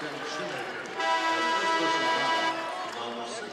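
A referee's whistle blows one long blast.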